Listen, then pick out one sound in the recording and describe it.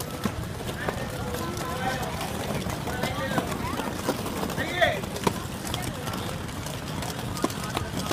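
Children shout and call out nearby outdoors.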